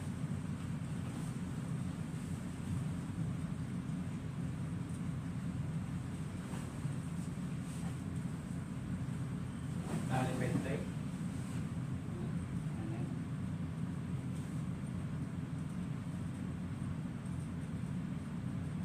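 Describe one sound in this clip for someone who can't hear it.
A bedsheet rustles and flaps as it is spread out.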